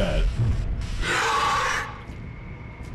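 A fire extinguisher sprays with a loud hiss.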